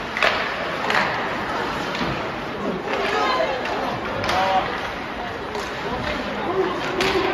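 Ice skates scrape and carve across the ice in a large echoing rink.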